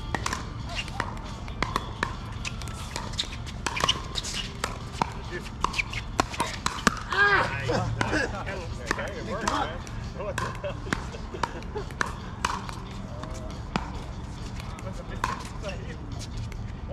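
Sneakers scuff and squeak on a hard court.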